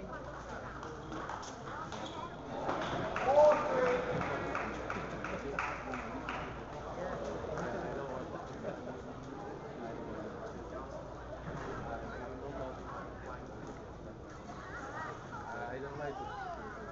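Spectators chatter in the background.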